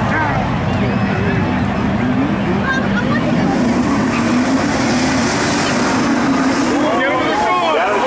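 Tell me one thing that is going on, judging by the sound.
Two car engines roar loudly.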